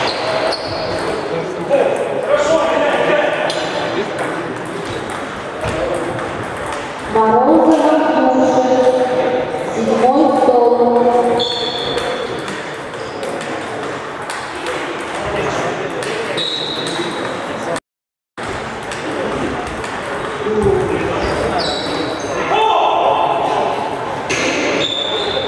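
Men talk in the background of a large echoing hall.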